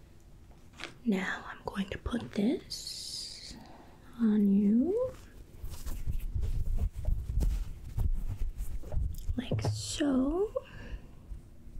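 A woman speaks softly, close to a microphone.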